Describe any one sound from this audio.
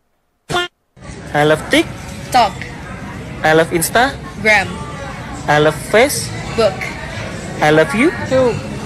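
A young woman speaks brightly and cheerfully.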